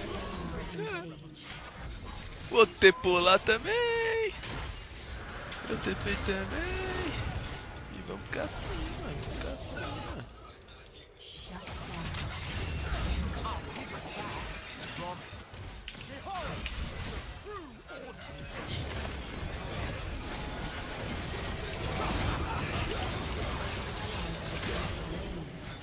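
A man talks into a microphone with animation, close up.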